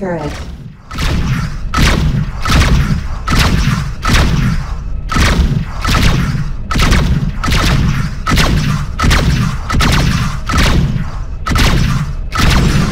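Heavy cannons fire in a steady run of booming blasts.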